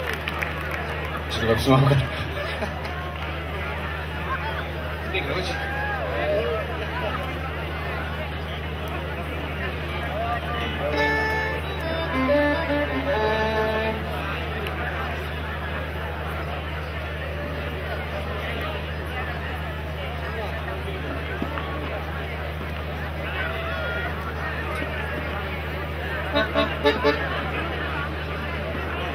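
An acoustic guitar strums softly.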